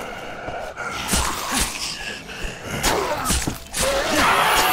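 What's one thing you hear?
Metal claws slash and squelch into flesh.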